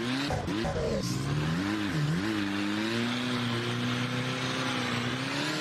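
Tyres screech as a car slides sideways.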